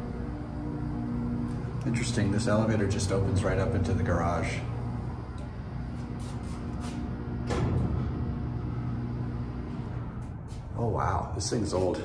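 A hydraulic freight elevator's pump hums as the car moves.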